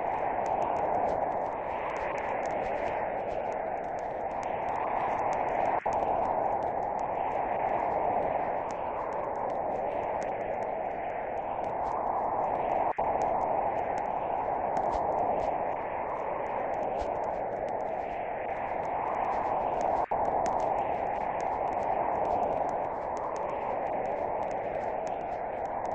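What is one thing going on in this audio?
Wind roars steadily from a nearby tornado.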